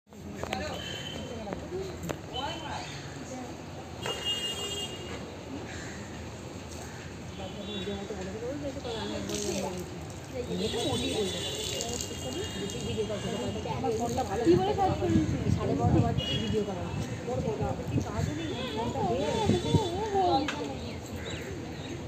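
A middle-aged woman talks close by in a calm, cheerful voice.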